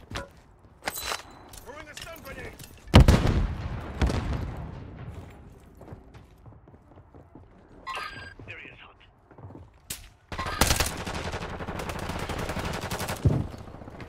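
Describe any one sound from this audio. Gunshots crack in bursts with echoing reverberation.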